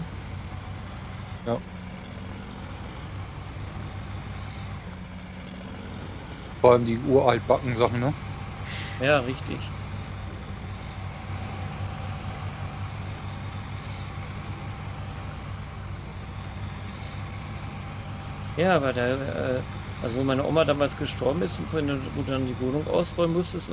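A heavy truck engine rumbles steadily as the truck drives slowly.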